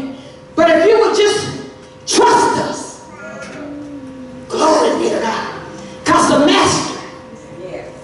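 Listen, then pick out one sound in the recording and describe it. A woman preaches loudly and with fervour through a microphone, in bursts, in a large echoing hall.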